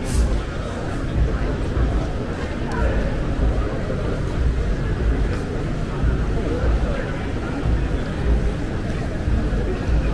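Wind gusts and rumbles strongly outdoors.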